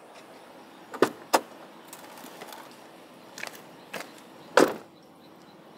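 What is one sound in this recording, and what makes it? Van doors open and thud shut nearby.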